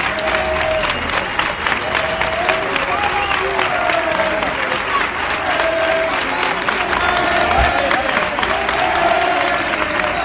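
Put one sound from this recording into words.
A large crowd claps steadily outdoors.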